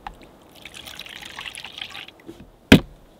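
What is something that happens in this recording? Milk pours into a plastic bowl.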